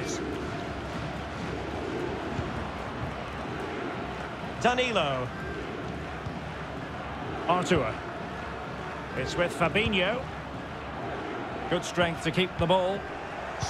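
A large crowd murmurs and roars steadily in a stadium.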